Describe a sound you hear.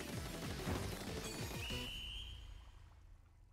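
Game weapons splash and burst loudly with quick, busy effects, then fade away.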